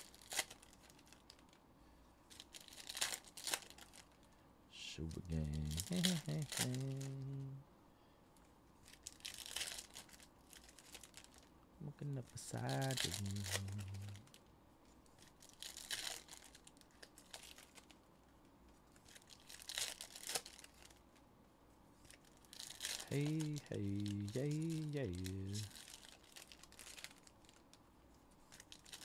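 Foil card packs crinkle and tear open.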